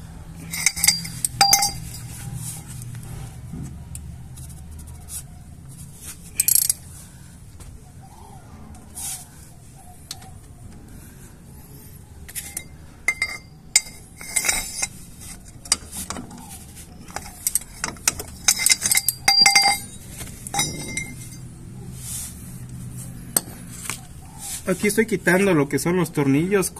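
Metal tools clink and scrape against a brake caliper.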